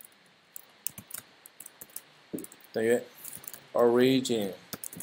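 Keys clack on a computer keyboard in short bursts.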